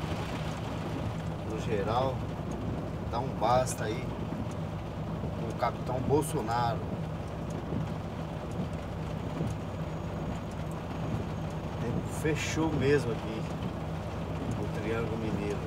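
Rain patters on a windshield.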